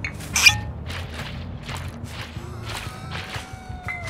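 A glass bottle clinks as it is picked up.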